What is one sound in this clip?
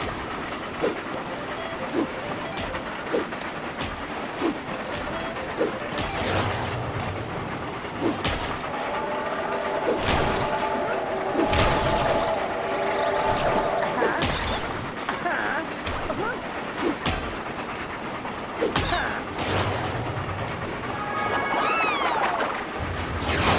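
A cartoon character's footsteps thud on wooden boards.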